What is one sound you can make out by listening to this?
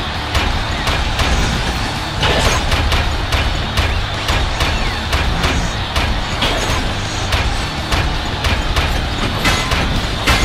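Heavy metal punches clang and thud in quick succession.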